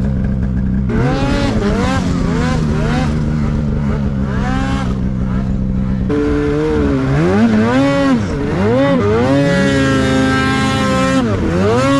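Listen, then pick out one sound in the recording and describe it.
A snowmobile engine revs up and down loudly.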